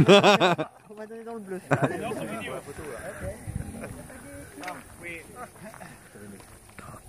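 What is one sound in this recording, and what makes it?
Several men and women talk nearby, outdoors.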